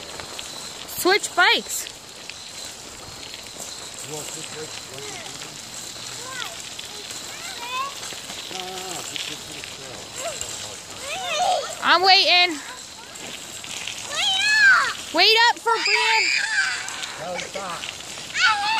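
A young child shrieks and shouts excitedly close by.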